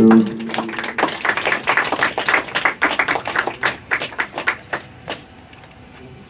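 A crowd claps and cheers in a live music hall.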